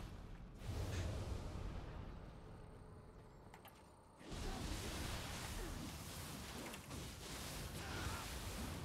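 Sword blows swish and strike in quick combat.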